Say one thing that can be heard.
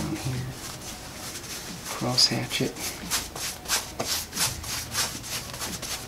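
A brush swishes in quick, repeated strokes across a board.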